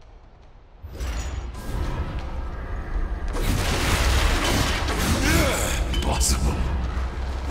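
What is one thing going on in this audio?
A blade swings and strikes in a fast fight.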